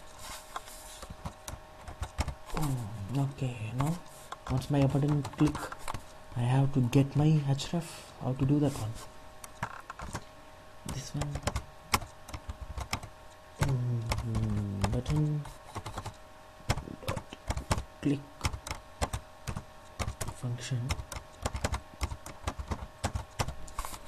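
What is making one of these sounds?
Keys clatter on a keyboard in quick bursts.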